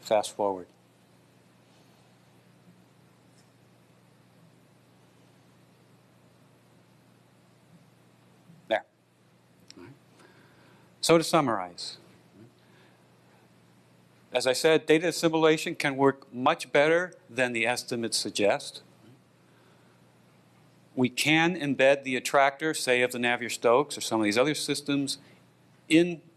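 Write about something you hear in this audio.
A man speaks into a microphone over loudspeakers in a large hall, with pauses.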